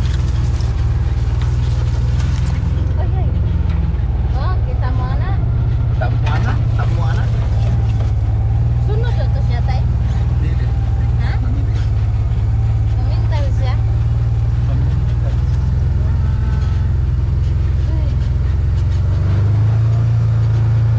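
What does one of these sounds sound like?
An off-road vehicle's engine hums steadily at low revs.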